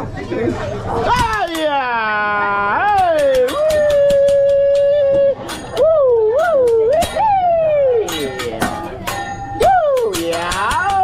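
A metal spatula clicks and clangs against a hot grill.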